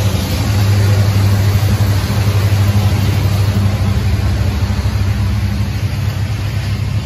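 A diesel locomotive engine rumbles loudly close by.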